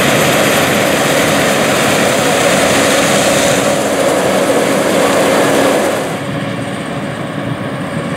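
A combine harvester engine roars loudly close by.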